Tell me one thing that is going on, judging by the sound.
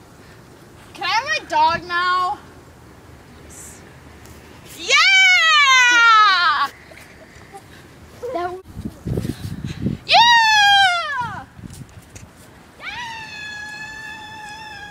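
A bird squawks loudly in long, falling cries, again and again.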